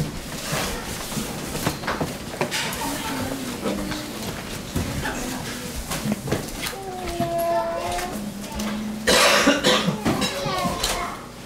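A middle-aged man speaks calmly in a small room.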